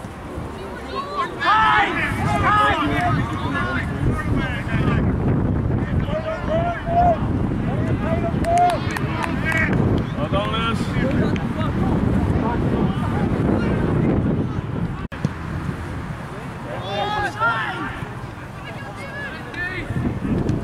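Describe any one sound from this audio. Young players shout and call to each other outdoors in the distance.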